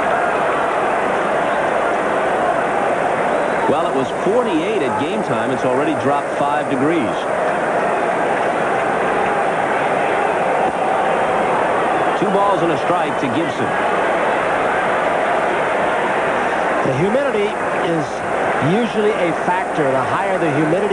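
A large crowd murmurs steadily.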